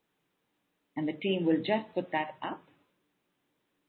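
A woman speaks briefly and calmly into a microphone.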